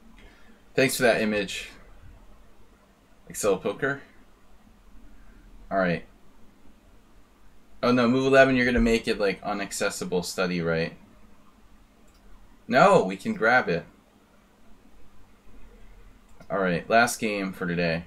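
A middle-aged man speaks calmly into a microphone in short bursts.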